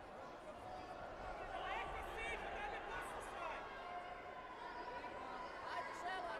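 A crowd murmurs and calls out in a large echoing hall.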